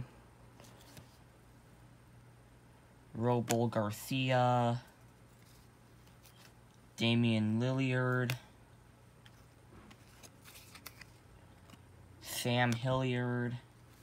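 A trading card slides softly onto cloth.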